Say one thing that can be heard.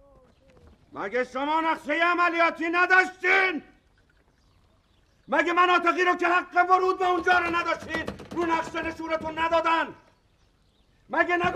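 A middle-aged man shouts loudly with anger.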